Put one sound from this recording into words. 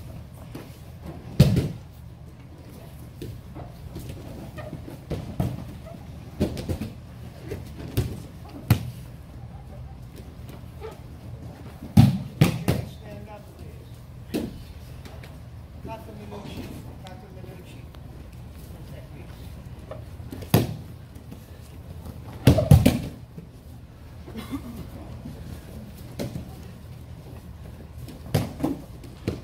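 Bare feet shuffle and slide across a mat.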